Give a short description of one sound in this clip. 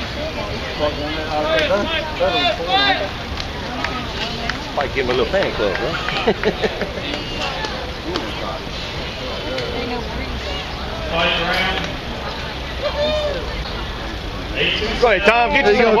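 A crowd of men and women chatters outdoors.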